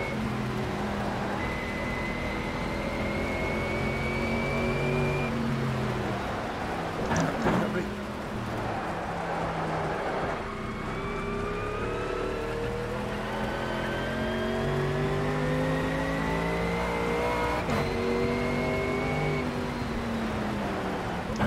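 Rain patters steadily on a windscreen.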